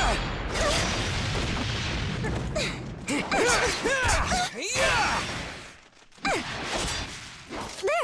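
Swords swish and clash in quick strikes.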